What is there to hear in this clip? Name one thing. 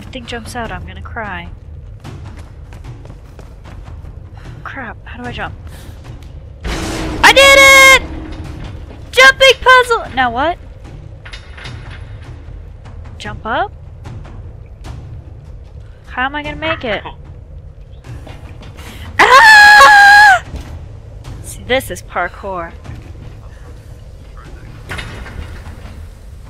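A young woman talks with animation close to a headset microphone.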